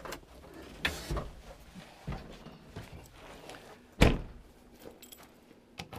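A tractor cab door latch clicks.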